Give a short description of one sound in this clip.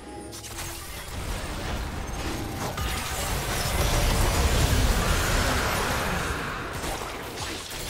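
Magic blasts and crackles burst in a loud fight.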